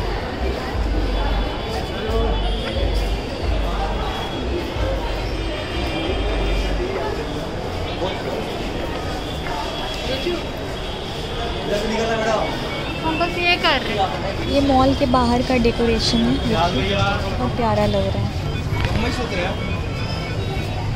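A crowd of people chatters throughout in a busy, echoing space.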